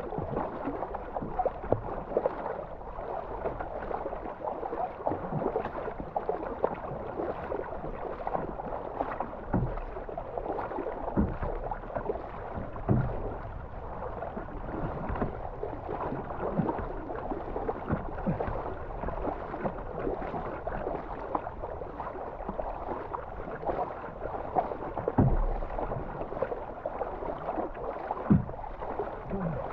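Water rushes along the sides of a moving kayak.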